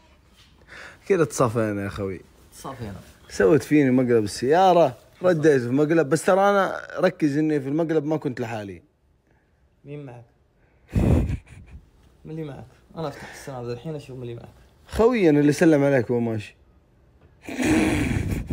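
A young man speaks with animation, close by.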